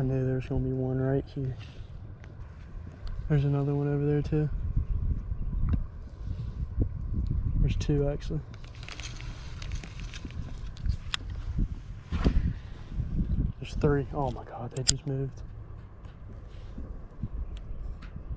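A fishing reel clicks as its handle is turned.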